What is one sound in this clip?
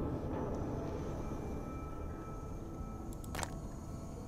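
A metal lid pops open with a sharp click.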